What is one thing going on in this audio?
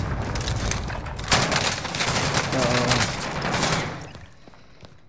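Gunshots fire in quick bursts nearby.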